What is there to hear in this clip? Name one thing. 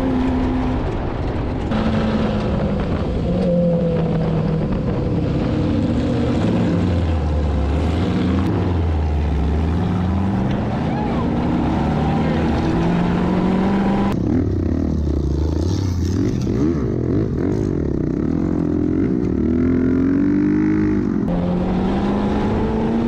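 A dune buggy engine roars loudly, its pitch rising and falling as it revs.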